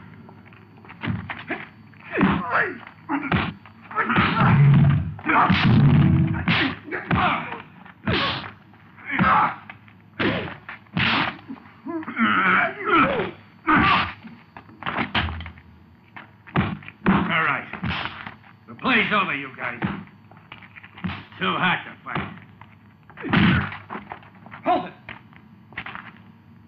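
Punches land with sharp, heavy thuds.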